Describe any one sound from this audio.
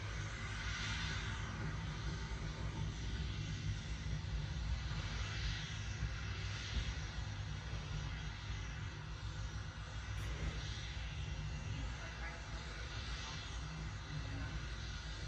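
A rocket engine roars steadily through a loudspeaker.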